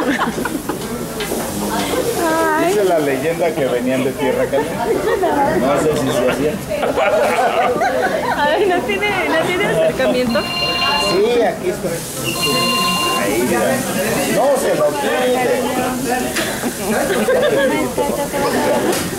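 Several men and women talk over one another nearby, in a lively crowd.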